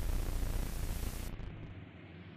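A television hisses with loud static.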